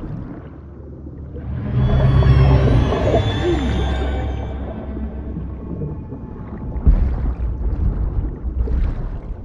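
Water rushes and rumbles in a deep echoing cave.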